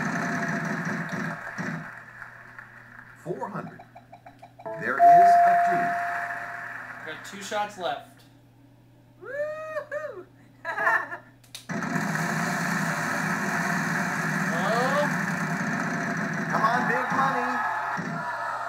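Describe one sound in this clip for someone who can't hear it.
A prize wheel spins with rapid clicking from a television.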